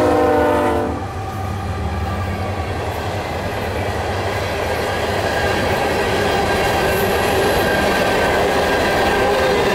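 Freight cars clatter and rumble steadily along the rails.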